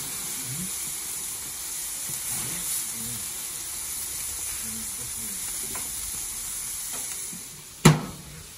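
Meat sizzles loudly on a hot grill.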